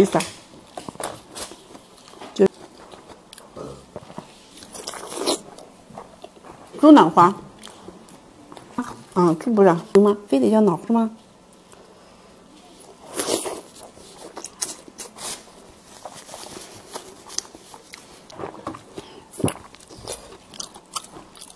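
Food crackles and squelches as hands tear it apart.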